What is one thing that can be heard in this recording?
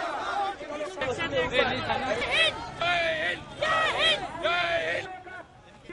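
An elderly man shouts a slogan loudly.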